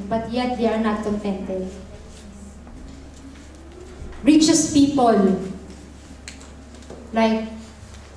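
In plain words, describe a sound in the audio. A young woman sings slowly into a microphone, heard through loudspeakers.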